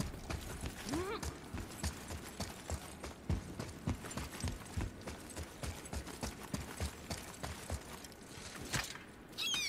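Heavy footsteps run across a stone floor.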